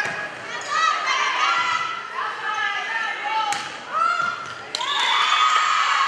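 Young women players call out to each other on the court.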